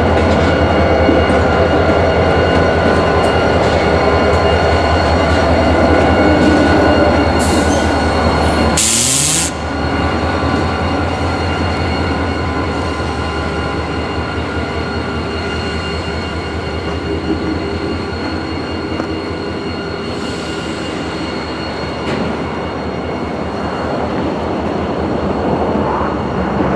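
A diesel locomotive engine rumbles loudly nearby.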